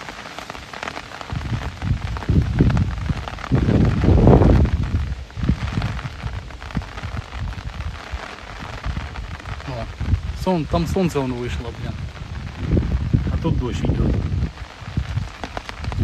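Wind gusts rumble heavily outdoors.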